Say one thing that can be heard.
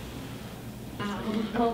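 A young woman speaks quietly into a phone close by.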